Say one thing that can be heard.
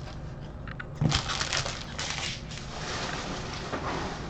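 Trading cards slide across a tabletop.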